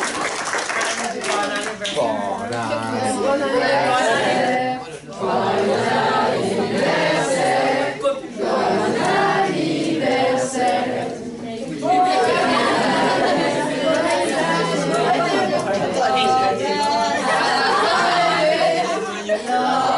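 Young people chatter in a room.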